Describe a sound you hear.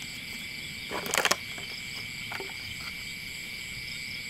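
Bare feet step on wet grass and mud.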